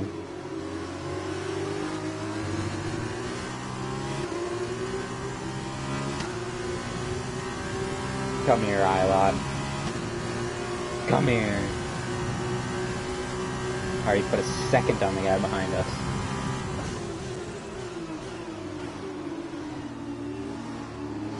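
A racing car engine screams at high revs, rising and dropping as gears shift.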